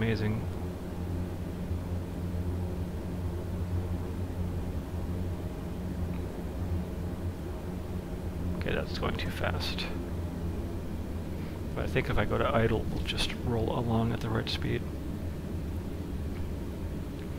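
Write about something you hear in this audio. A jet engine hums low and steady.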